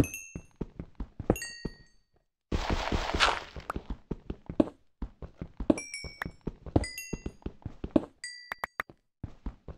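A pickaxe chips rapidly at stone and dirt.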